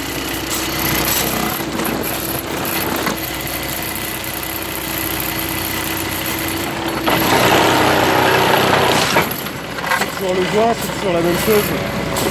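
A hydraulic machine hums and rattles steadily close by.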